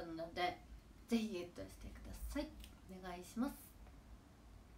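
A young woman speaks close to the microphone in a lively, expressive tone.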